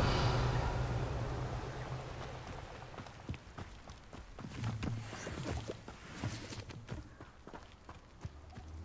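Footsteps crunch on gravel at a quick pace.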